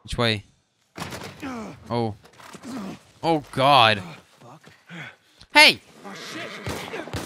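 A man shouts in surprise.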